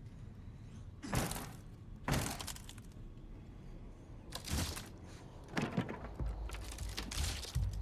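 A wooden crate is smashed apart with sharp cracks.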